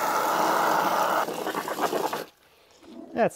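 Water sprays from a garden hose with a steady hiss.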